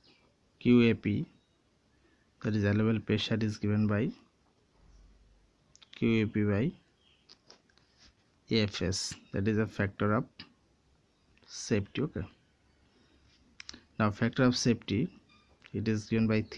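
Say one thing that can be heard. A ballpoint pen writes on paper.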